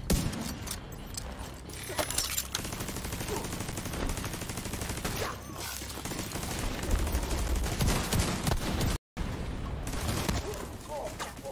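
Gunfire rattles and explosions boom.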